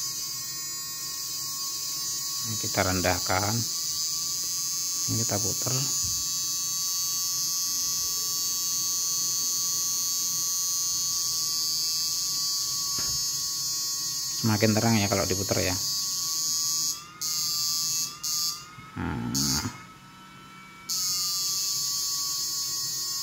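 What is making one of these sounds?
An electrical device whines steadily.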